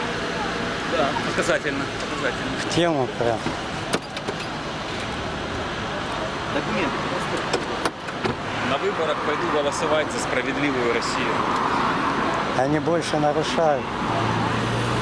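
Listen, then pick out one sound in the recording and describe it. Middle-aged men talk calmly nearby, outdoors.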